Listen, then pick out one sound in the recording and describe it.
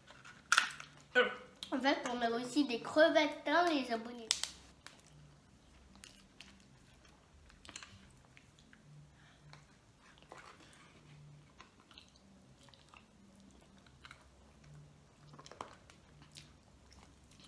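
Crab shells crack and snap in hands.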